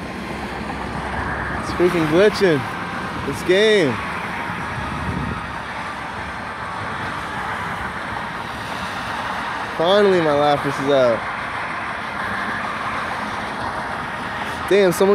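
Blasts of fire and energy crackle and whoosh steadily.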